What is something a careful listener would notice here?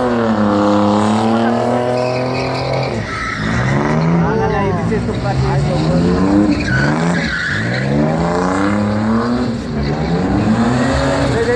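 Tyres screech and squeal on tarmac.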